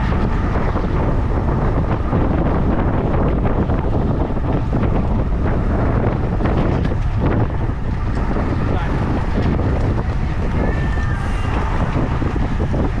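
Wind roars loudly past the microphone of a moving bicycle.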